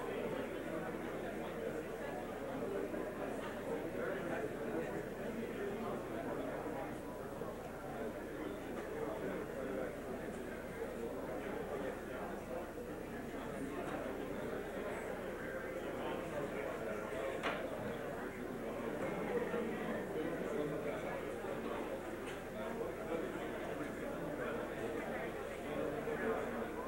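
A crowd of men and women chatters steadily in a large echoing hall.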